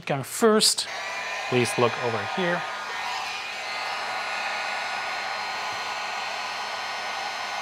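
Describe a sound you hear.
A heat gun blows hot air with a steady whooshing roar.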